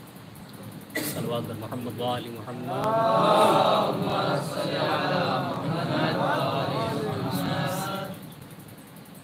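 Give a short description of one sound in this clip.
A young man sings a melodic chant into a microphone, heard through loudspeakers in an echoing hall.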